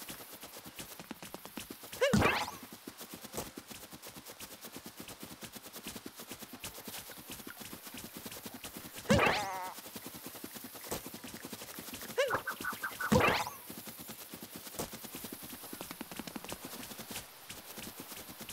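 Quick light footsteps patter across grass.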